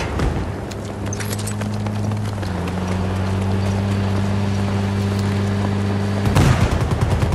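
A vehicle engine drones steadily nearby.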